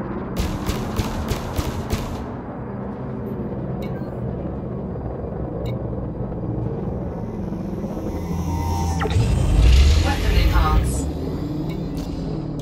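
A motion seat's motors whir and hum as the seat tilts.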